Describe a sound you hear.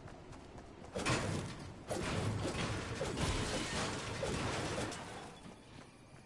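A launch pad fires with a loud whoosh of rushing air.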